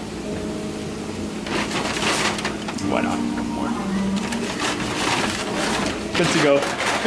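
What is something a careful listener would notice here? A paper bag rustles and crinkles in hands.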